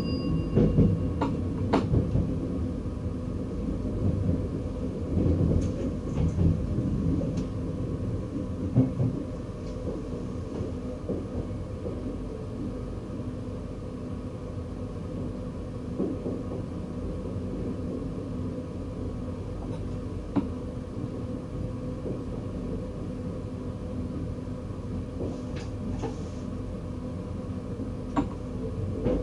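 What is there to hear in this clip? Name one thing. Train wheels clack over rail joints and switches.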